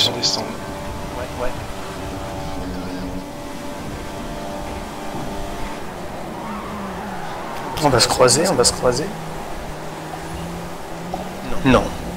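A racing car engine drones steadily, shifting in pitch as it accelerates.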